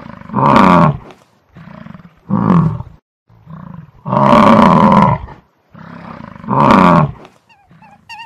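A bison bellows loudly several times.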